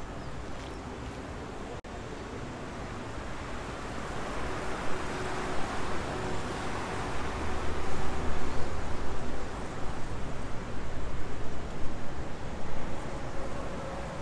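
Traffic rumbles steadily on a nearby road outdoors.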